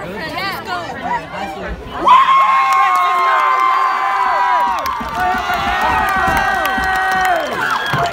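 A large crowd cheers and chatters outdoors.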